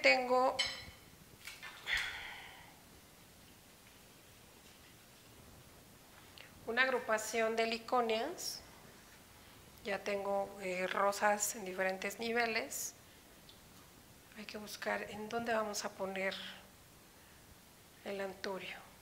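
A middle-aged woman speaks calmly and clearly, close by, in short bursts with pauses.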